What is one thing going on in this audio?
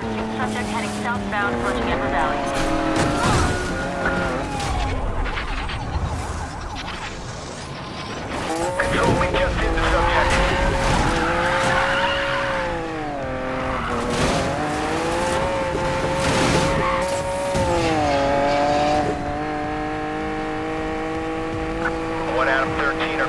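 A sports car engine roars at high revs, shifting gears as it speeds up.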